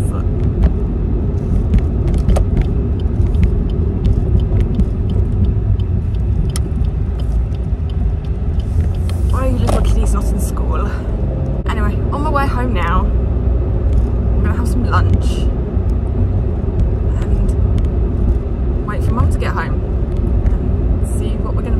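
A car engine and road noise rumble steadily.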